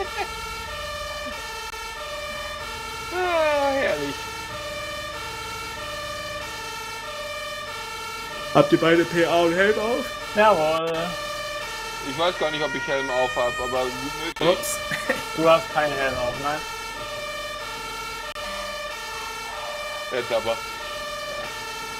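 A two-tone siren wails steadily.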